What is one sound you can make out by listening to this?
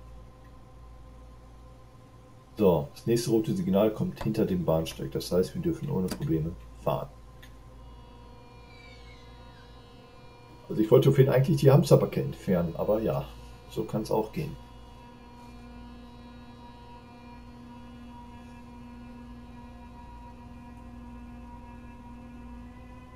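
An electric train's motor hums steadily as it rolls slowly along the track.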